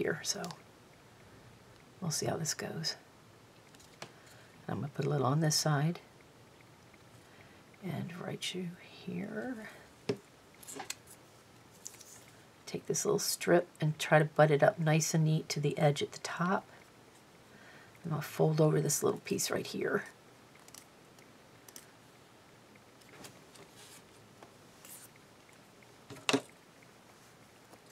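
Paper crinkles softly as hands fold and wrap it.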